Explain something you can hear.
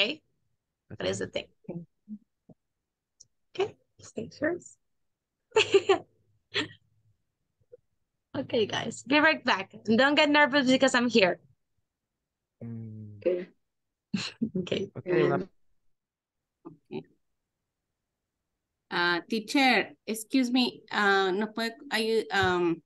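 A young woman speaks clearly over an online call, with pauses.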